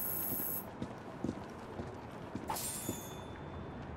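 Footsteps thud on a roof.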